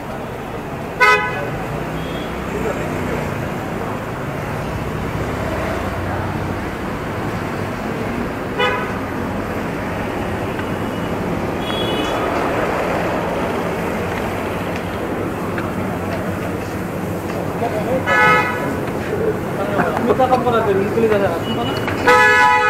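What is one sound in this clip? Vehicle horns honk briefly now and then.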